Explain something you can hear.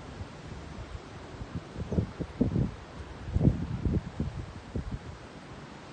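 Wind gusts through bare branches outdoors.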